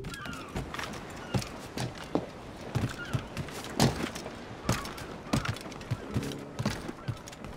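Footsteps thud quickly on a wooden deck.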